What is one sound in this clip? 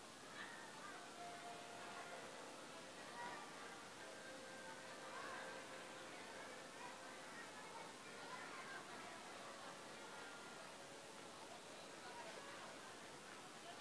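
A young woman reads out calmly into a microphone over a loudspeaker outdoors.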